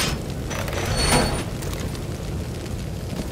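An explosion bursts nearby.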